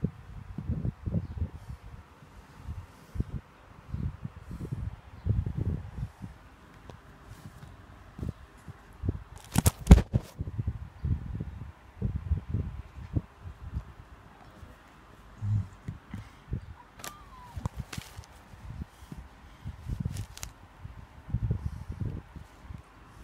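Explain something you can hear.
Cloth rustles and bumps as a cat rolls and paws at it.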